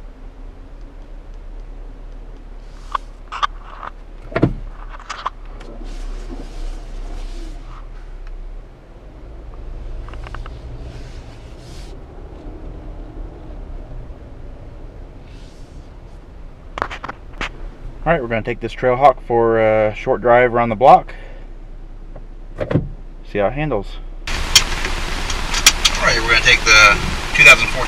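A car engine idles quietly.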